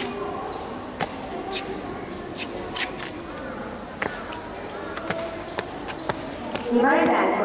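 Boots stamp sharply on hard ground as a cadet marches.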